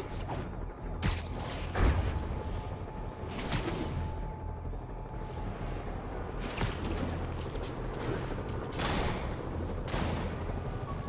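Web lines shoot out with sharp whooshing snaps.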